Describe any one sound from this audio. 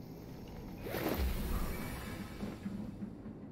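A web shoots out with a whooshing swish.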